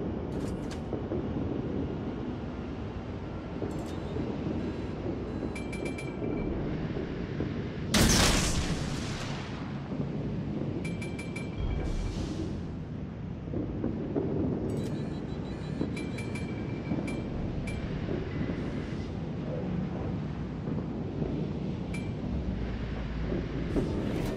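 A ship's engine rumbles steadily over the sea.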